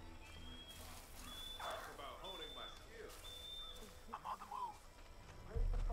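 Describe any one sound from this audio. Leaves rustle as something pushes through a bush.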